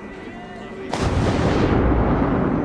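A body plunges into deep water with a heavy splash.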